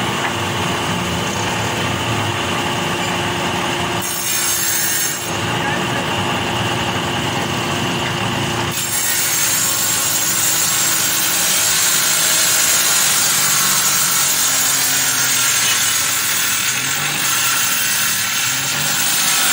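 A wood planer machine roars steadily as wood is fed through it.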